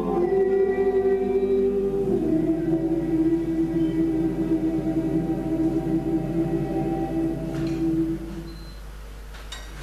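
A men's choir sings together in harmony in an echoing hall.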